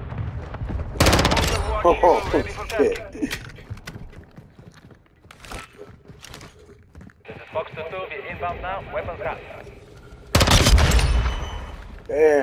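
A rifle fires loud bursts of gunshots.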